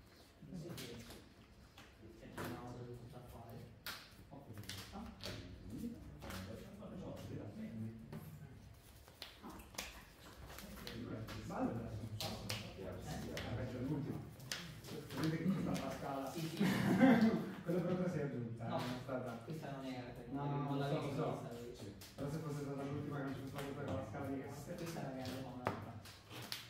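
Playing cards tap and slide onto a mat.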